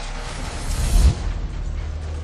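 A heavy crash booms.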